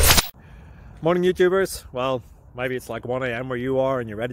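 A man talks with animation close to a phone microphone, outdoors.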